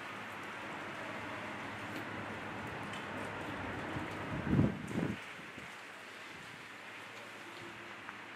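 Plastic bags and clothes rustle as they are handled.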